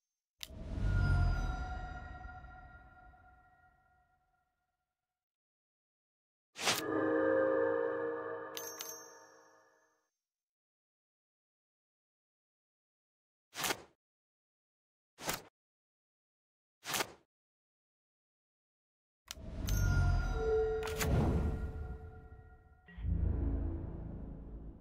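Bright chiming game sound effects ring out and fade.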